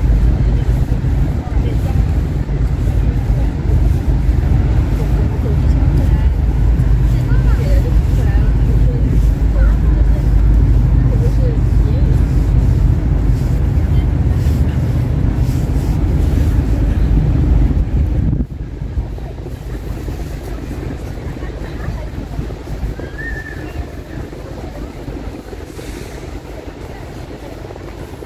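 Rain patters steadily on wet pavement outdoors.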